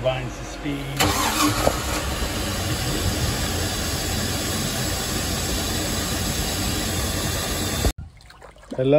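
A boat engine runs with a loud, steady rumble.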